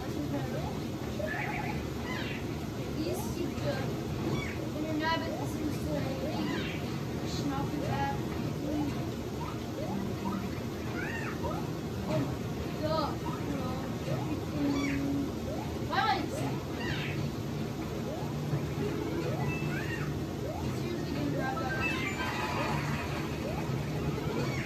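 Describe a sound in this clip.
Chirpy video game sound effects sound from a television.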